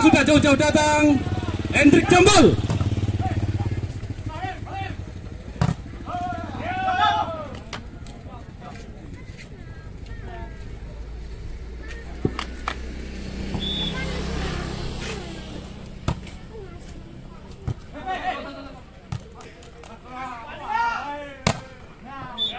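A volleyball is struck with sharp slaps of hands.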